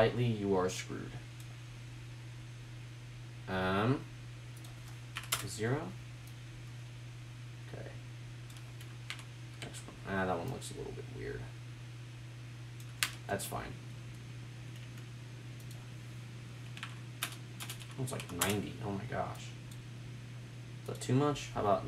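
A computer mouse clicks.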